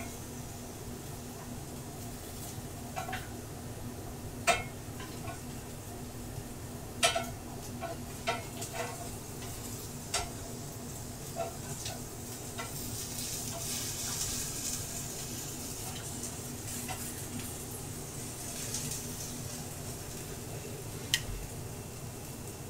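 Potatoes sizzle in a hot pan.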